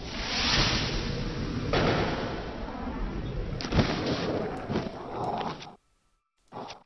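Wind blows hard across open ground.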